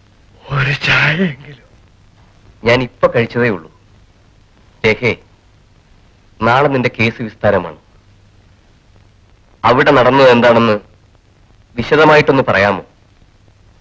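A man speaks with feeling, in short bursts.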